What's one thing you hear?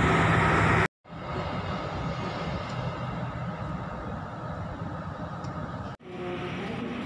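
Another train rumbles past close by.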